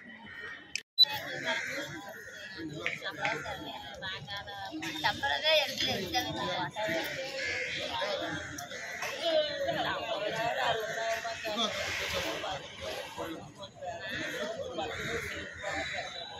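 A crowd of women chatters outdoors.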